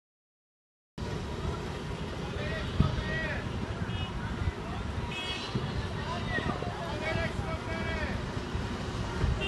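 Car engines rumble steadily outdoors.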